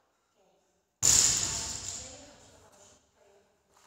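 A barbell crashes down onto a rubber floor and rings out in a hall with some echo.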